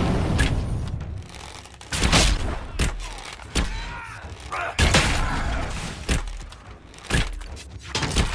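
A bow twangs as arrows are loosed again and again.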